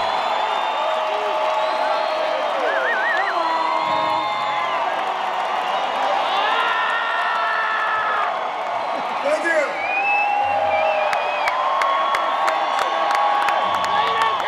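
Concertgoers whistle.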